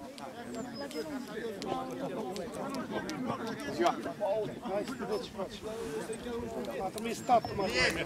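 Several men talk and call out across an open outdoor field.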